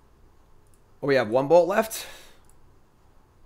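A young man speaks close to a microphone, with a brief drawn-out exclamation.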